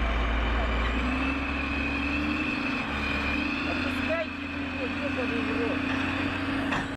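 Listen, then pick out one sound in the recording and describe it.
A heavy engine rumbles and strains steadily.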